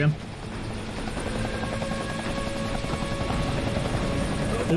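A helicopter drones overhead.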